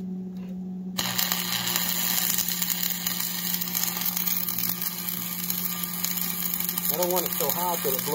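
An electric welding arc crackles and hisses steadily.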